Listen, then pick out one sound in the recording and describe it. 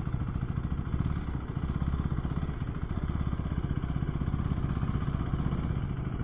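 A motorcycle engine rumbles steadily at low speed.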